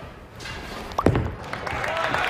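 A bowling ball thuds onto a wooden lane.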